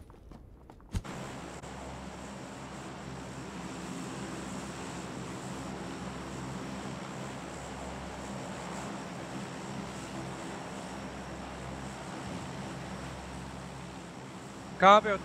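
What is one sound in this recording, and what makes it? A large propeller plane's engines drone steadily.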